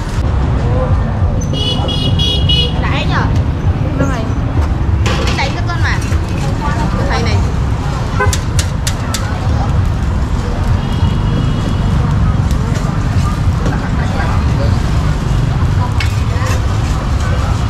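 Motorbike engines hum and pass by on a busy street.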